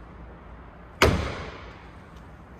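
A car's boot lid slams shut with a heavy thud.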